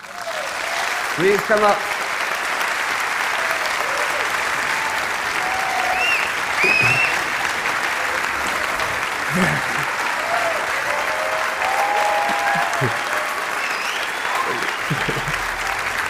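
Audience members cheer and whistle.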